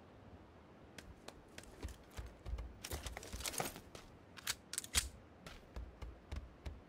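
Footsteps thud on a hard floor indoors.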